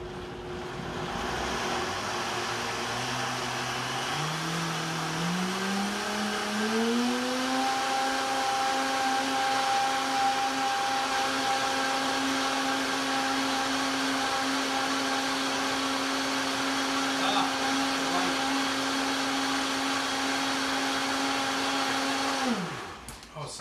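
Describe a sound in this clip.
An electric kitchen appliance whirs, its motor speeding up and then holding a steady hum before switching off.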